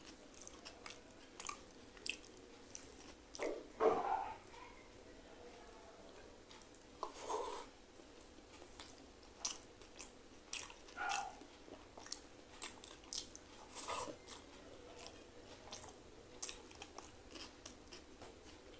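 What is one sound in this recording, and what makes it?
Fingers squish and mix rice close by.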